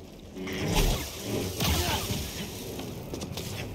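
A lightsaber crackles and sizzles against stone.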